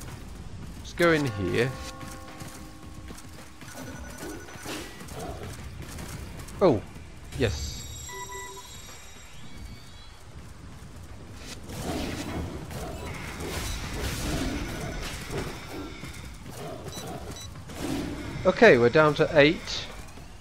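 Tigers roar and snarl loudly.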